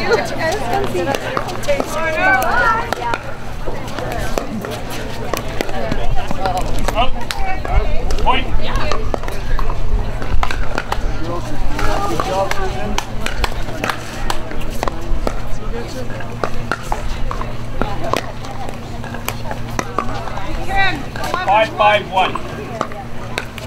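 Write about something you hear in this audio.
Young women talk and call out to each other nearby.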